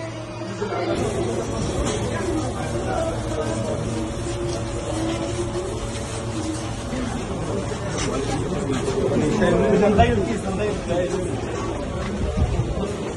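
A crowd of men talk and murmur nearby.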